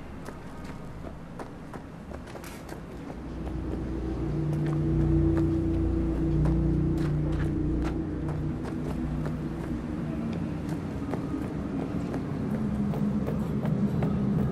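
Footsteps tap on hard pavement.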